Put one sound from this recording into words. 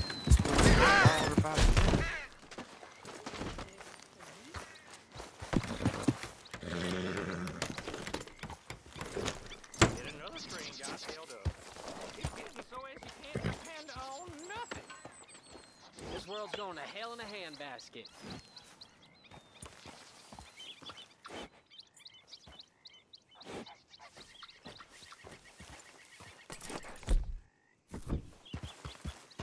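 A horse's hooves clop on soft ground.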